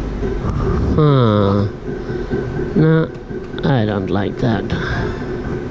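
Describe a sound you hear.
A gaming machine plays bright sweeping chimes.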